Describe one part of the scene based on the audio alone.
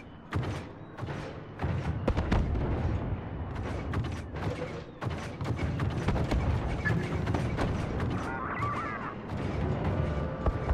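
Laser blasters fire in rapid bursts nearby and far off.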